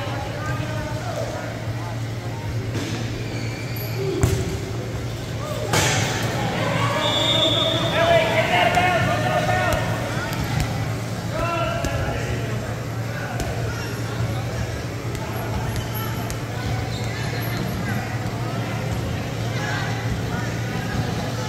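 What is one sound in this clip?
Men and women talk and call out in a large echoing hall.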